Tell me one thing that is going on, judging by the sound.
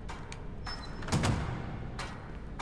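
A heavy iron door thuds shut.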